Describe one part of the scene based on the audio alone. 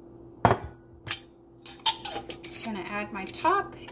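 A metal lid is screwed onto a glass jar.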